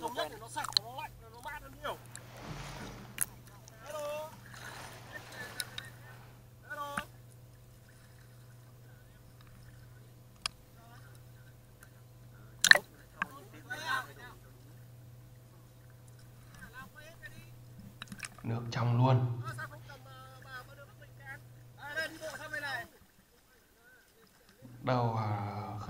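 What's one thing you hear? Young men talk and call out with animation outdoors.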